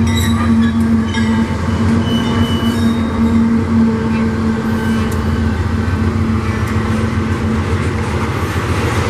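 A diesel locomotive engine rumbles loudly close by.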